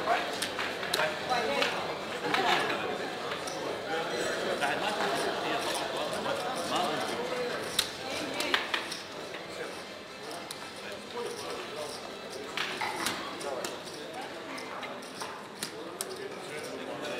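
Casino chips click and clatter as they are stacked and moved.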